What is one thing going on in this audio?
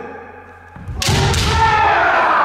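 Bamboo swords strike together with sharp clacks in a large echoing hall.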